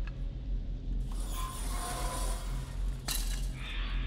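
A torch bursts into flame with a loud whoosh.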